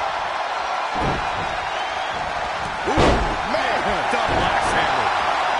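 Heavy bodies slam onto a wrestling ring mat with dull thuds.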